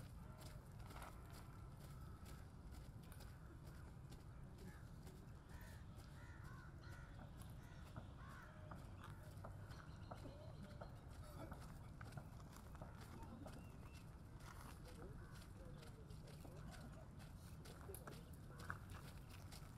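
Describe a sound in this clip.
Boots march in step on pavement outdoors.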